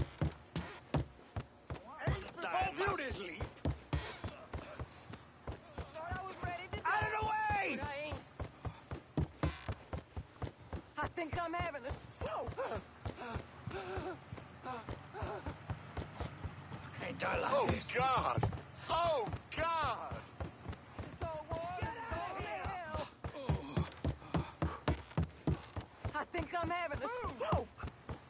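Footsteps thud steadily.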